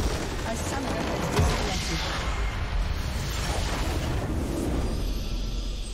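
Game spell effects crash and whoosh in a flurry.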